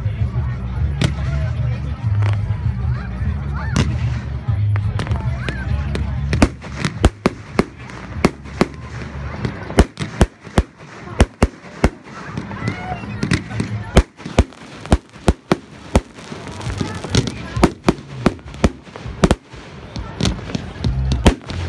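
Fireworks burst with loud bangs and crackles nearby.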